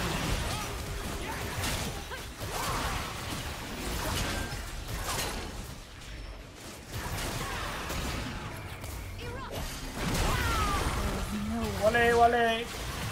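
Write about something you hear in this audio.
Magic spells whoosh and blast in quick bursts of fighting.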